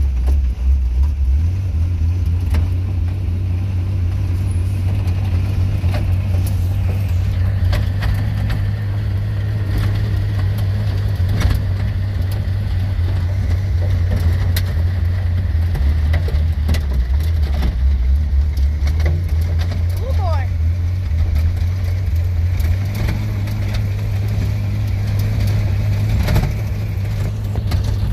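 A race car engine roars loudly and steadily from inside the car.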